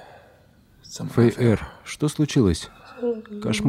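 A young man asks a question softly, close by.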